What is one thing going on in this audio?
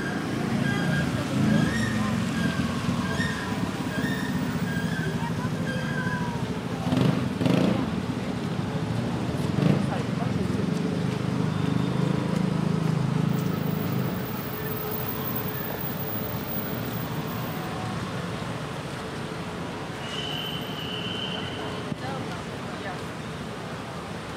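City traffic hums and rumbles along a wet street.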